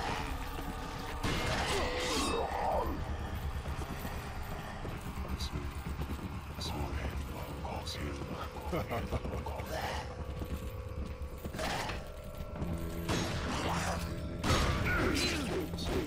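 A large creature growls and snarls.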